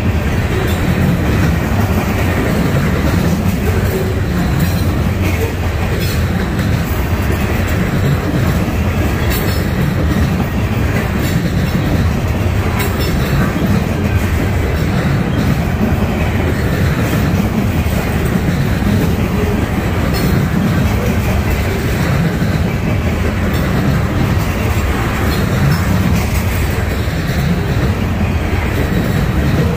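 Steel wheels clatter and click over rail joints.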